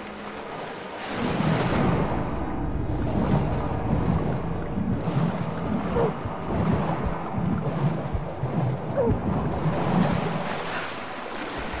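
Water rushes and bubbles, muffled, as a figure swims underwater.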